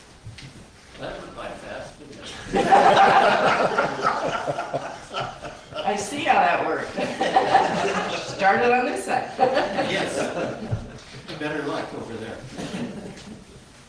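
An elderly woman speaks calmly into a microphone, heard through a loudspeaker in a room with some echo.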